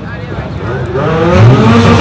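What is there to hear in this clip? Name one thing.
A race car engine revs up loudly.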